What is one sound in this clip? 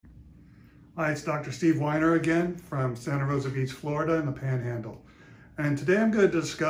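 A middle-aged man speaks calmly and clearly up close.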